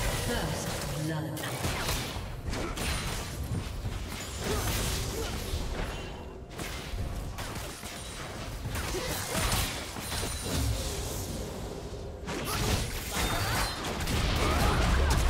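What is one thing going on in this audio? Game spells crackle and burst in a fight.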